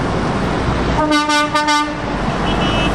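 A truck horn blares loudly.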